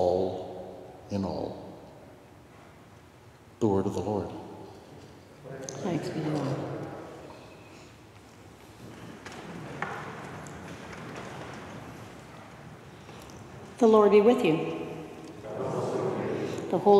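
A man chants in a large echoing hall.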